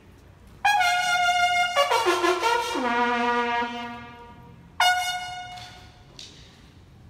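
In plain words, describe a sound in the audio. A bugle plays a short call that rings out across an echoing courtyard.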